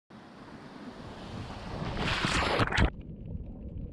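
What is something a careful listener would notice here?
Rushing water splashes loudly, then cuts off.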